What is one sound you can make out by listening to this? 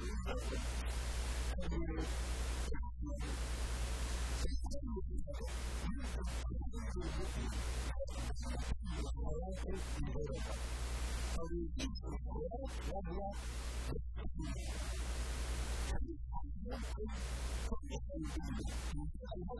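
A middle-aged man speaks with animation through a microphone and loudspeakers in an echoing room.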